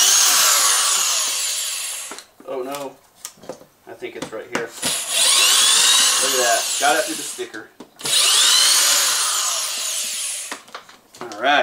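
A power drill whirs in short bursts as it drives screws.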